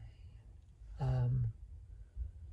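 A man speaks close by in a low, tired voice.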